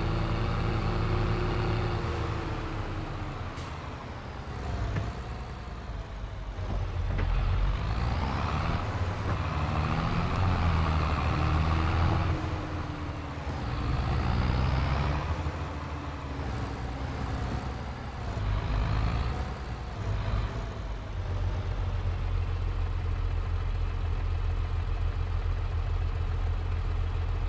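A tractor engine rumbles steadily, rising and falling in pitch as it speeds up and slows down.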